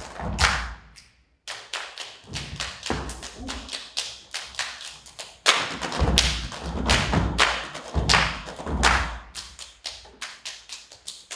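A group claps and slaps their bodies in a quick, tight rhythm.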